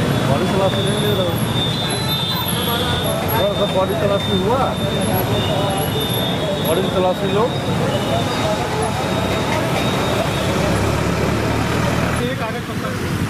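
Several men talk at once in a noisy crowd outdoors.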